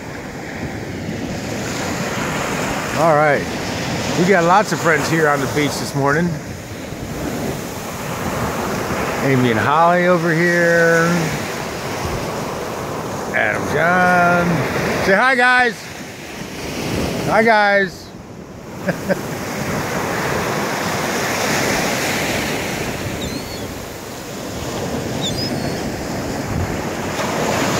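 Waves wash and break steadily onto the shore.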